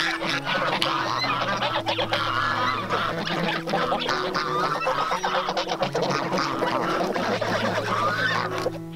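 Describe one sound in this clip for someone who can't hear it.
A flock of geese cackles and honks softly close by.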